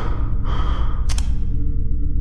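A flashlight clicks on.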